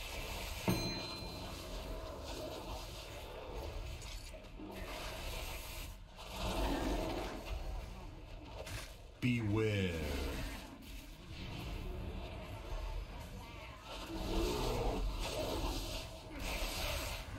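Magic spells whoosh and crackle in a busy game battle.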